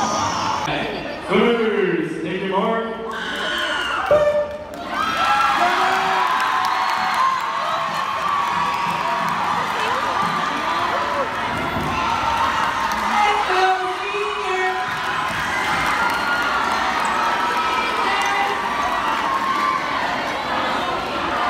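Young women shout and scream close by.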